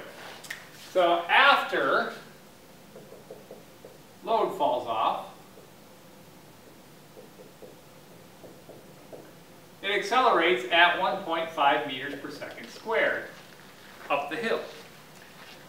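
A middle-aged man speaks calmly, in bursts with pauses.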